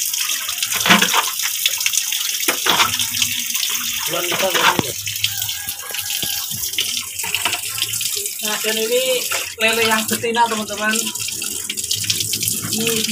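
Water gushes from a hose and splashes into shallow water.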